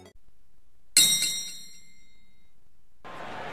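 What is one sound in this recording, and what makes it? An arcade game machine plays a bright chime.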